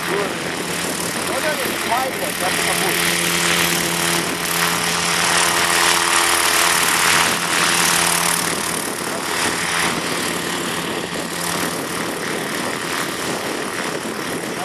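Helicopter rotor blades whir and beat the air.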